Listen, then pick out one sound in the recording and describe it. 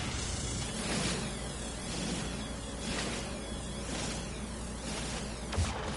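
A sci-fi mining laser hums as it fires.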